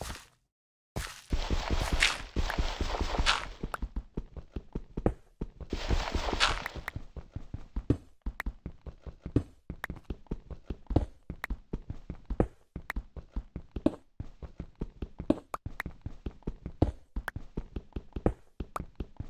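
Dirt crunches in short, repeated bursts as digging goes on.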